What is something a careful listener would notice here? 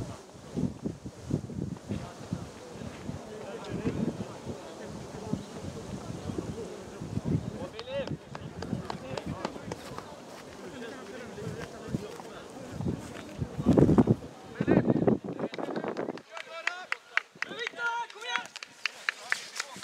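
Spectators chatter in the distance.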